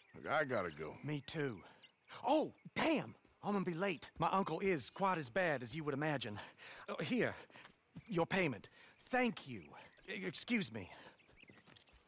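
A young man speaks calmly and quickly, close by.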